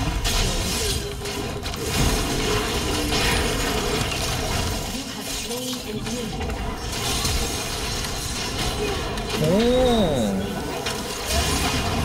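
Fighting sound effects from a video game crackle and thump.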